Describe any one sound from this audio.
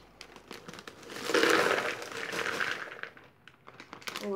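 Crisps pour and rattle into a plastic bowl.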